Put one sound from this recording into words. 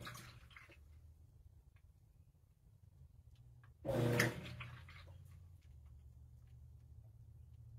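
Water sloshes in a washing machine drum.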